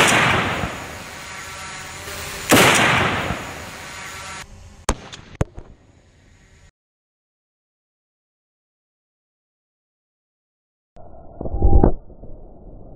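A rifle shot cracks loudly outdoors.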